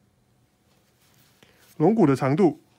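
A pigeon briefly flaps its wings.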